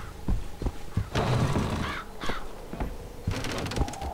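A heavy wooden door swings open.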